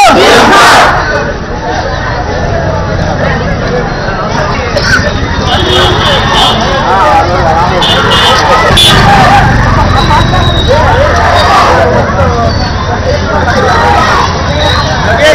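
A crowd of men chants and talks loudly outdoors.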